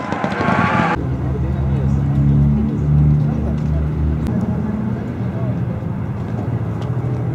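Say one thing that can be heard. A race car engine idles with a low, rough rumble close by.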